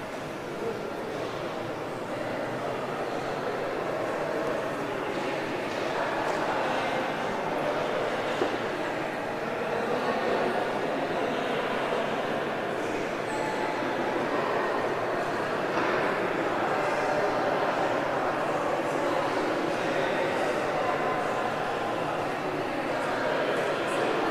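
Cars pass by on a street nearby.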